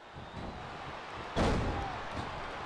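A body slams heavily onto the ring mat.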